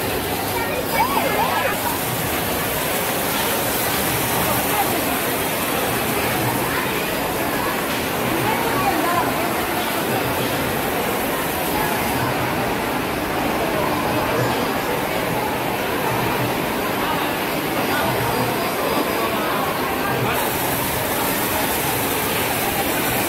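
A crowd chatters in a busy, echoing hall.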